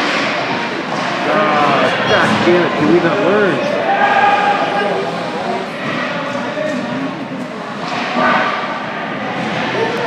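Skates scrape and swish across ice in a large echoing rink.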